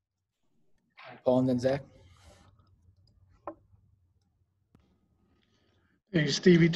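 A young man speaks calmly and closely into a microphone, in short bursts with pauses.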